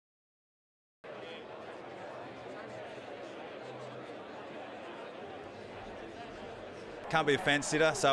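A large crowd murmurs and chatters in a big room.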